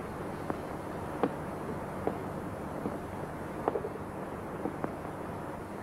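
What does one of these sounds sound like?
Footsteps tap slowly across a hard floor in an echoing hall.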